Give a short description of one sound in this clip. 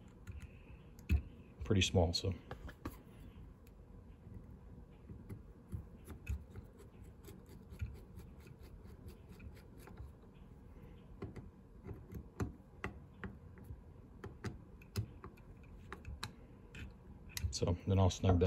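A screwdriver clicks and scrapes against small metal parts.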